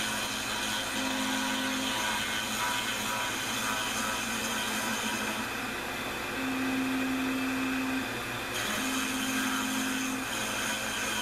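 Stepper motors hum in short bursts as the machine's table moves.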